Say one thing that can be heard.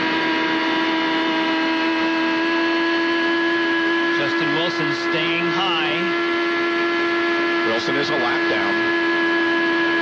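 Other racing cars whine past.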